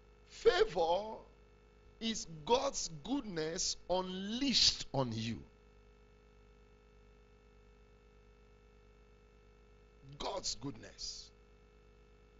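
A man preaches with animation through a microphone, in short bursts.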